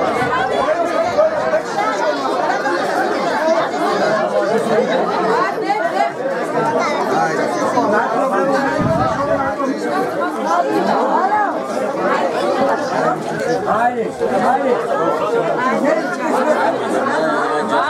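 A crowd of men, women and children chatter loudly all around, close by.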